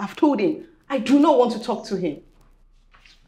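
A woman speaks with feeling nearby.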